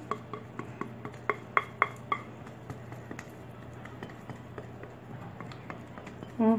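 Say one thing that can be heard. A spatula scrapes thick batter from a bowl.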